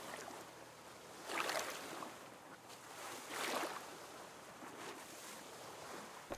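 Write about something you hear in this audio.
Waves surge and crash against a rocky shore, with swells at times.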